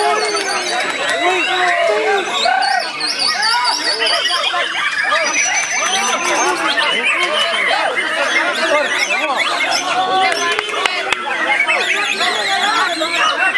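Many songbirds chirp and whistle busily all around.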